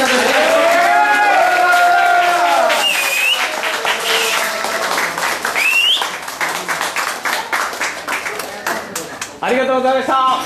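Hands clap along in a quick rhythm.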